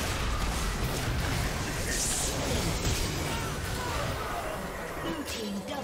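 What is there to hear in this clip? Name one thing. Magic blasts and weapon hits crackle and thud in a fast video game fight.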